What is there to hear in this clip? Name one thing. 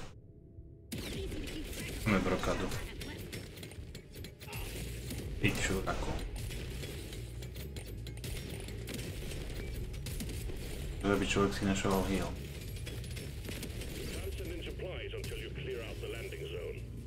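Gunfire and blasts crackle from a game.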